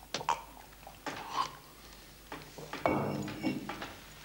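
A woman sips noisily from a glass.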